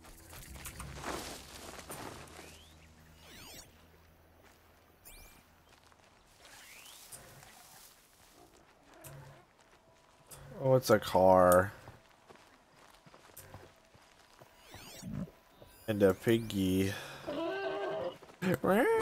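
Footsteps rustle through grass and brush.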